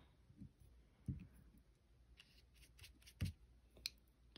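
A brush taps against a glass dish.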